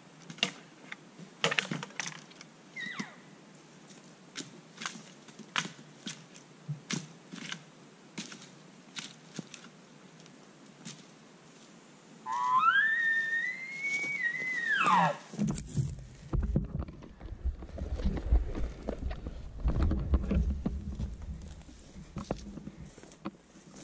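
Boots crunch through dry grass and brush.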